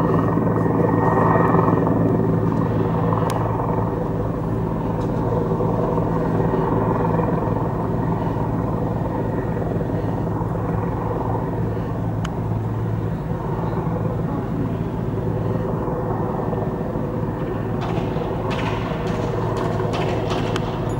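A vehicle engine idles nearby with a steady low hum.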